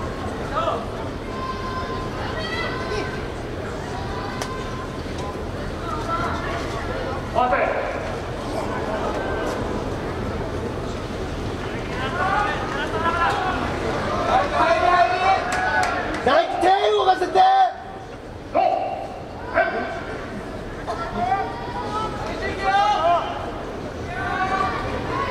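A crowd in a large echoing hall shouts and cheers.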